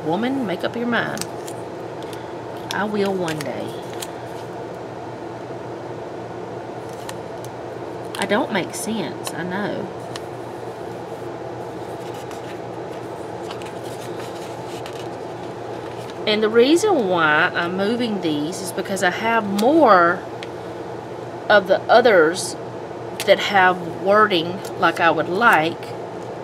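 A sticker peels off its backing paper.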